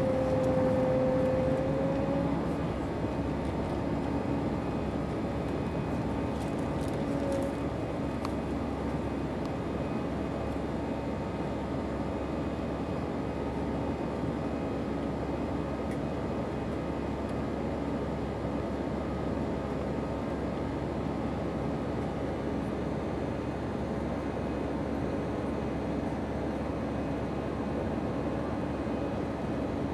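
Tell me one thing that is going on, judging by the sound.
Air rushes loudly past the aircraft.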